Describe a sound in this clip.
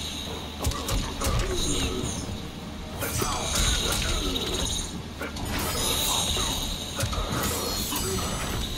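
Fighters grunt and shout with effort.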